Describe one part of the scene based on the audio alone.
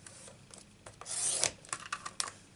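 A paper trimmer blade slides along with a scraping hiss.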